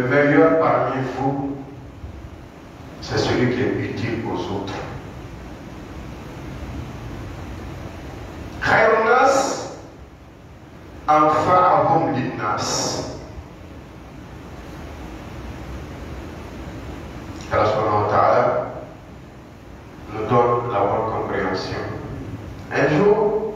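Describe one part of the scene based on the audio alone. A man preaches forcefully through a microphone in a large echoing hall, in loud bursts with pauses between them.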